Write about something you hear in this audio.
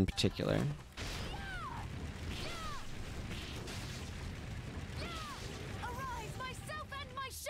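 Fire blasts roar steadily.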